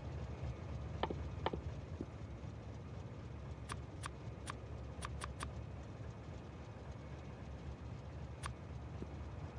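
Soft interface clicks tick several times.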